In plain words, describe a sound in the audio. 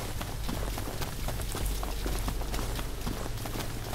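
Leafy branches swish and brush past.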